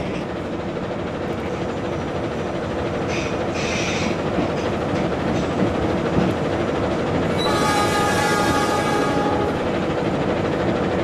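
Train wheels roll and clatter along the rails.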